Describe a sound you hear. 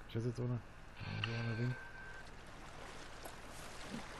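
Water splashes as a pot is dipped into it.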